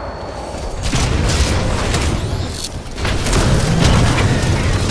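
A large robot stomps heavily on hard ground with deep thuds.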